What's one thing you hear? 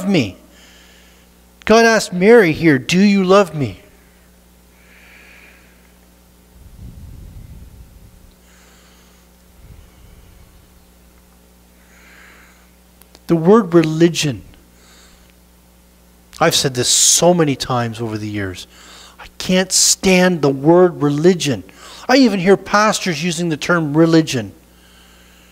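A man speaks with animation, pausing between phrases.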